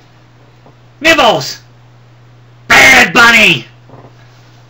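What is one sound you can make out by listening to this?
A man shouts and growls in a loud, rasping voice close by.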